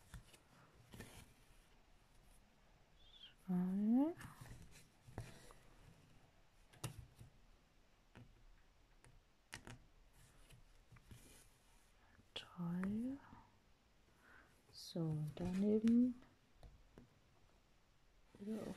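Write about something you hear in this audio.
A needle taps and pokes through stiff fabric.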